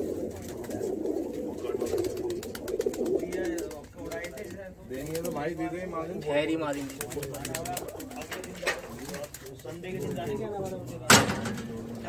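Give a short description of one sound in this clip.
Pigeons coo in low, throaty murmurs.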